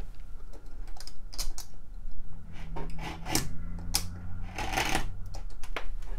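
A blade scrapes along the edge of a wooden board.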